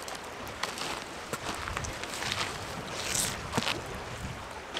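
Footsteps crunch on gravel and stones.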